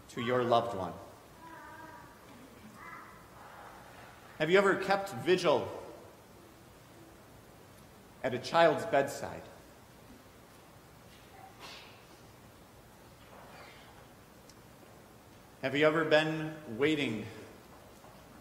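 A man speaks slowly and calmly in a room with a slight echo, pausing between phrases.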